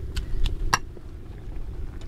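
A metal tool clinks against a ceramic bowl.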